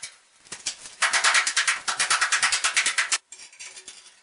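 A tool taps rapidly against a wall tile.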